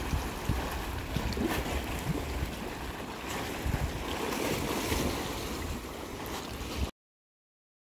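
Water splashes as a swimmer swims close by outdoors.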